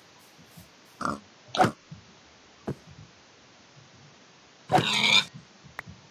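A pig squeals as it is struck.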